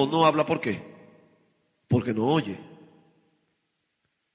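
A man preaches with passion through a microphone in an echoing hall, in short bursts.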